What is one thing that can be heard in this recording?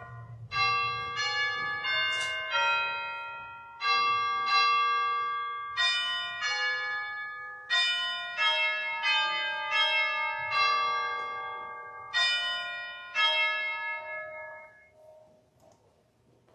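A piano plays a slow melody in an echoing hall, its notes ringing out.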